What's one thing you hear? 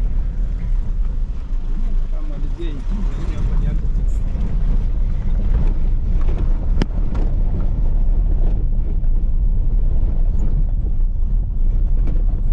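A vehicle engine rumbles steadily, heard from inside the car.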